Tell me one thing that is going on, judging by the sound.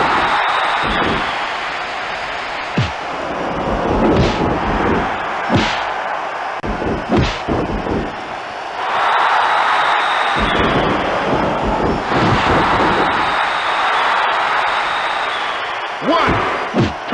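A crowd cheers loudly throughout.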